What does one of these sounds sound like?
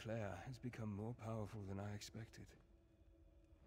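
A young man talks calmly into a nearby microphone.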